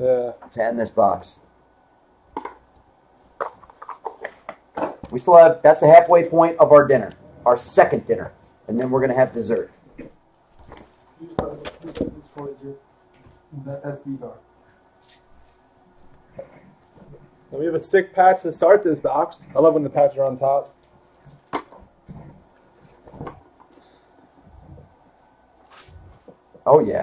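Cardboard card boxes rustle and tap as hands handle them.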